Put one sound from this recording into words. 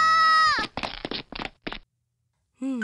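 A young woman shouts out in alarm.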